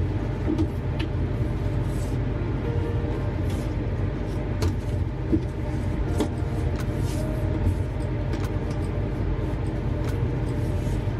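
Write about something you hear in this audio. A plastic box creaks and taps under hands.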